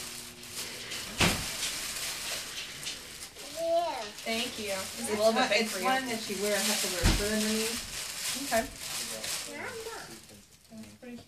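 Wrapping paper rustles and crinkles close by.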